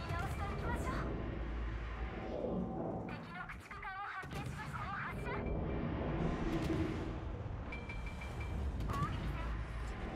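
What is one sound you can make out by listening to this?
Heavy naval guns boom and rumble in repeated volleys.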